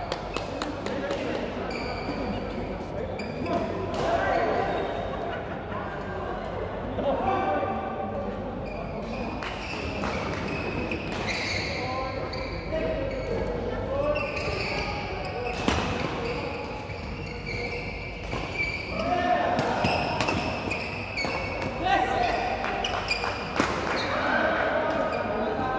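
Young men call out and talk with animation in a large echoing hall.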